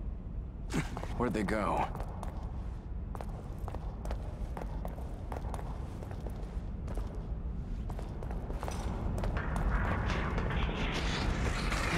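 Footsteps crunch over loose rubble.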